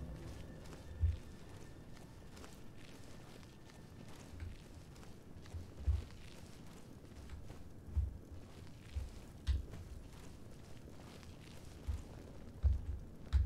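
Heavy footsteps thud slowly on stone in an echoing hall.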